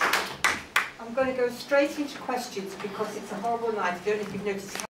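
An older woman speaks calmly, heard at a little distance.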